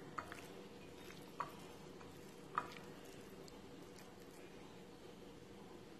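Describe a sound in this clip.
Hands squish and mix pieces of meat in a bowl.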